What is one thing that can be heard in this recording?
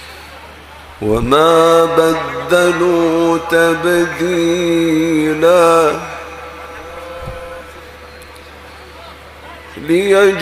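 A man chants in a long, melodic voice through a microphone.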